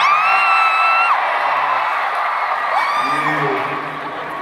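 A crowd whistles shrilly in a big echoing arena.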